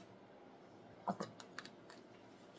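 A plastic bottle crinkles and clicks as it is squeezed.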